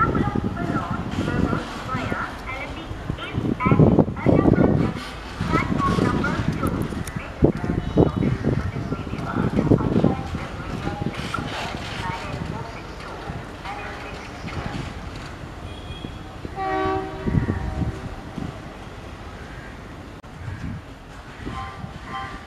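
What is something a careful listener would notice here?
A diesel locomotive rumbles as it pulls slowly into a station.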